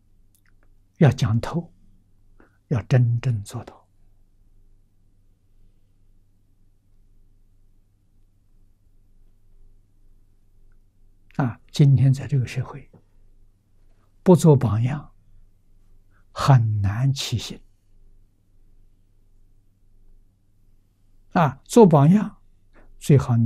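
An elderly man speaks slowly and calmly into a close microphone, with long pauses.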